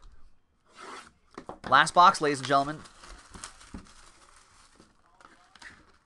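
Plastic wrap crinkles as hands tear it off a box.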